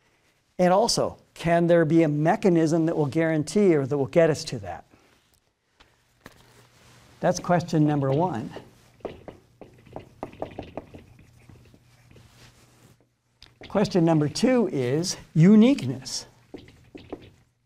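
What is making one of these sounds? An older man lectures with animation into a close microphone.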